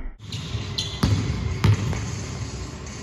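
A basketball bounces sharply on a hard floor in an echoing hall.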